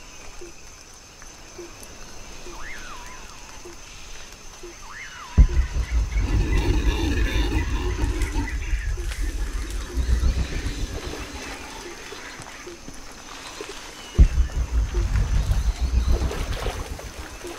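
Footsteps rustle softly through jungle undergrowth.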